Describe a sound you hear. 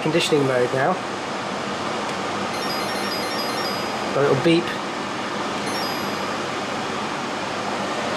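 A portable air conditioner hums and whirs steadily.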